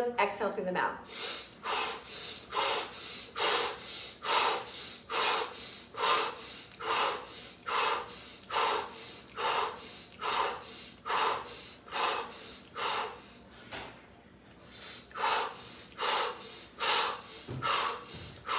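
A middle-aged woman breathes in and out forcefully in a steady, even rhythm.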